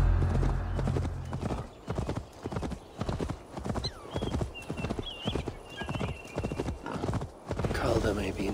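A horse gallops with quick, heavy hoofbeats.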